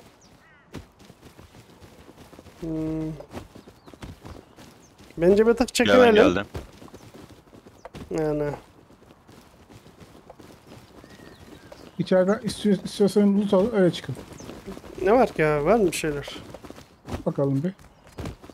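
Footsteps tread over grass and ground.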